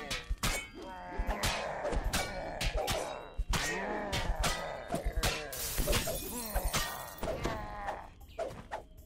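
Weapons clash and strike in a fast fight.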